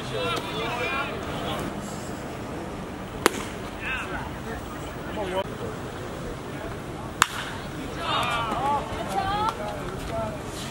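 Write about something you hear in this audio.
A man calls out loudly outdoors.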